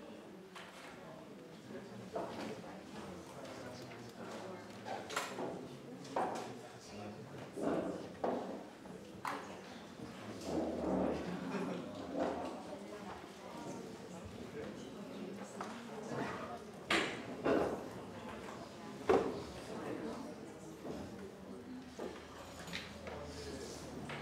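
A man speaks steadily into a microphone, heard through loudspeakers in a large room.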